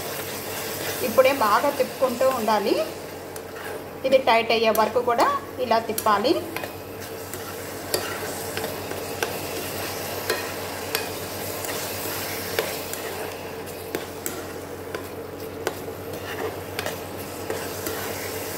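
A metal spoon scrapes and taps against a metal pan as thick food is stirred.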